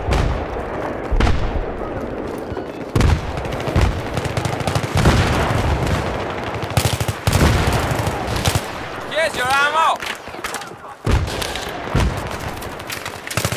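Gunfire cracks in rapid bursts with echoing booms.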